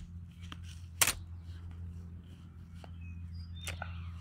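A folding chair clatters as it is set down on grass.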